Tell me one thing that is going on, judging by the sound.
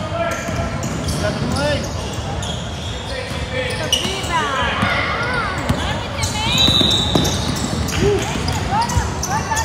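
Young players shout to each other in an echoing gym.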